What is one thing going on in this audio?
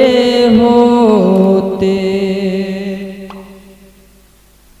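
A young man sings a long held melodic note through a microphone, with echo, then trails off.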